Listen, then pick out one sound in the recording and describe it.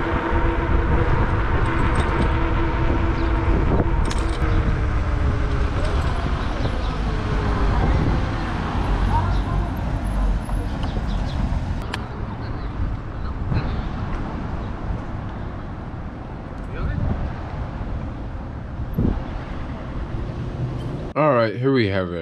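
Wind rushes steadily past while riding outdoors.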